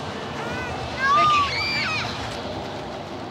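A woman cries out loudly.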